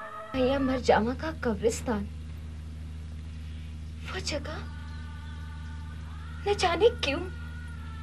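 A young woman speaks anxiously in short bursts, close by.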